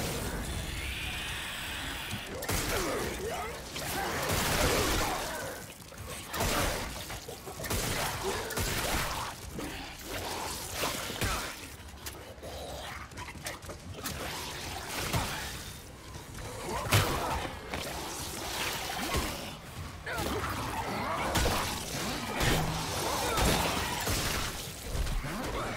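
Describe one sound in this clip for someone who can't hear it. A creature snarls and shrieks.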